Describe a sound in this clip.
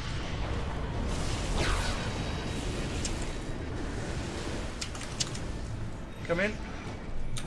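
Game spells whoosh and crackle during a fight.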